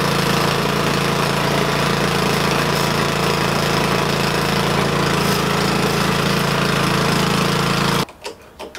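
A small petrol engine runs close by with a loud, steady drone, then abruptly cuts out.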